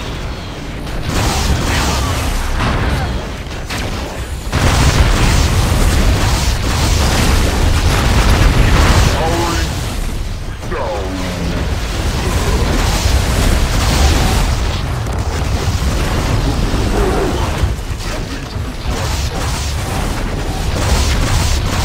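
Fiery explosions boom and roar again and again.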